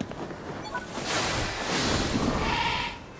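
Wind rushes loudly past during a glide through the air.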